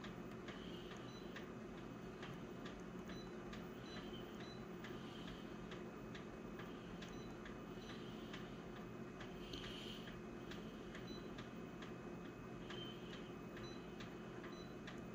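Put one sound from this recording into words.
A touchscreen gives short soft beeps with each tap.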